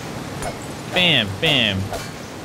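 A young man shouts loudly into a microphone.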